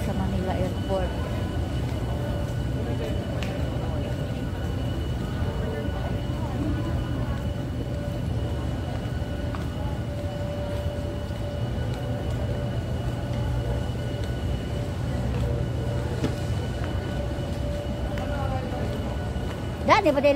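A woman talks quietly close by.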